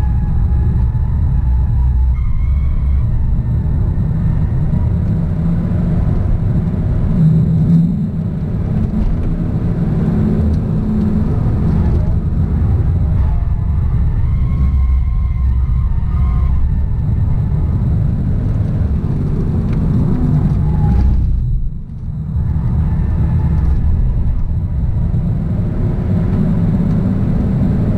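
A car engine roars loudly inside the cabin, revving up and down through the gears.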